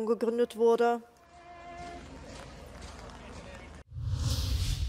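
A crowd of men murmurs quietly.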